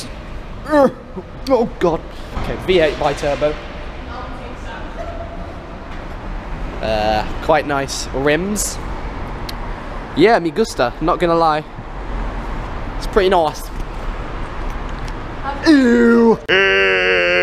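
A young man talks excitedly, close to the microphone.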